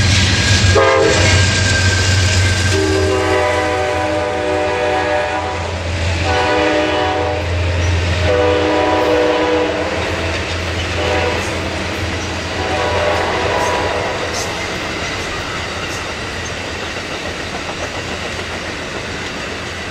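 Train cars clatter and squeal along the rails.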